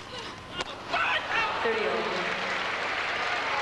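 A large crowd applauds and cheers in a big echoing arena.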